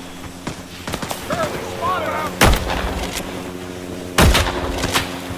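Explosions boom nearby with heavy blasts.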